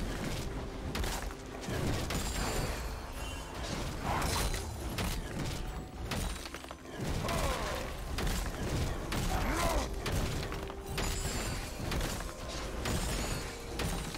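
Game attack impacts thud and clash repeatedly.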